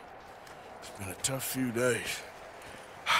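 A second man answers in a low, calm voice.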